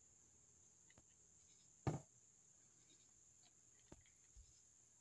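A tool knocks against wood a few times, close by.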